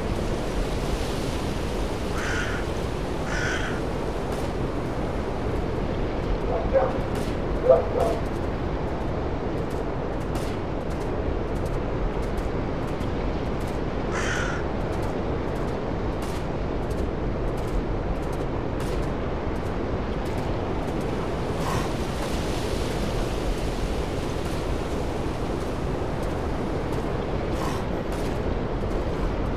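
Wind blows steadily through tall trees outdoors.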